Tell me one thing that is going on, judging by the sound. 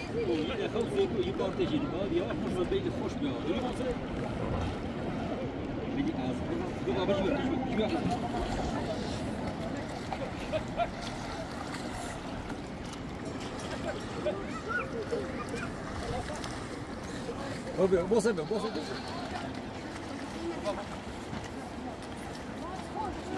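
A river rushes and splashes steadily close by.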